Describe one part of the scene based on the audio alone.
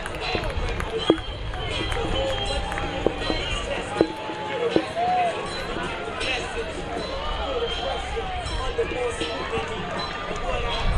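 A distant crowd murmurs and calls out across an open outdoor field.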